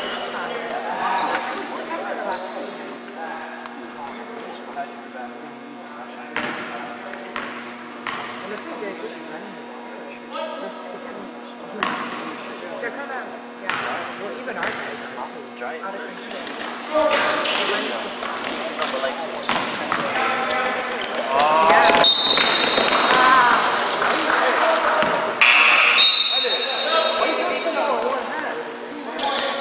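Players shout to each other across an echoing gym.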